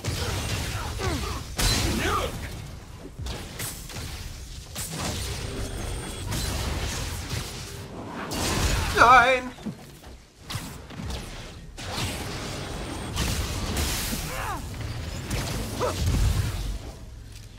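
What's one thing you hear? Debris crashes and clatters as objects are hurled.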